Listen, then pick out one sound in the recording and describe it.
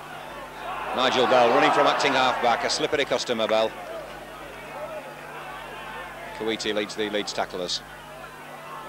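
A crowd cheers and shouts loudly.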